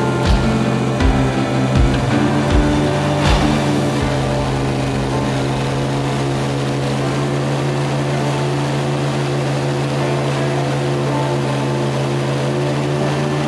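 Water splashes and churns in a boat's wake.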